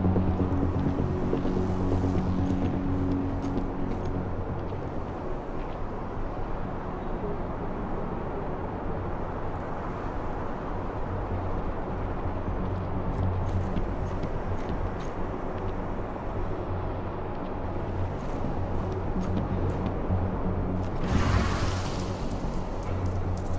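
Soft footsteps pad along a hard floor.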